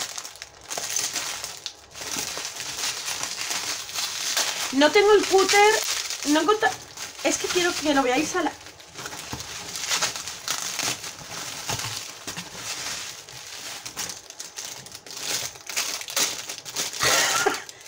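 A middle-aged woman speaks close to a microphone, with animation.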